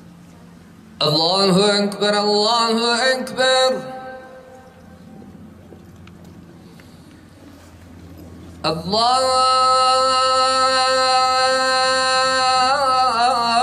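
A man chants loudly in long, drawn-out melodic phrases through a microphone and loudspeakers, outdoors.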